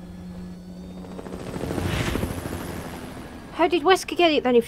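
A helicopter roars past, its rotor noise swelling and fading.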